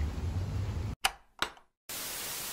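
A machine's button clicks twice.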